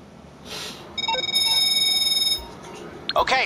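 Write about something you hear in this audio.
A phone rings with a steady electronic tone.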